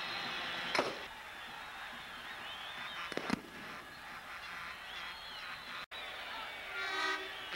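A large crowd cheers in a stadium.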